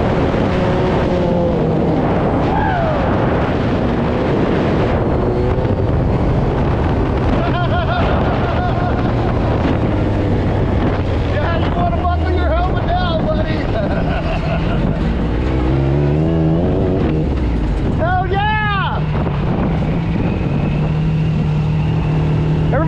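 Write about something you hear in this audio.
Wind rushes past an open vehicle.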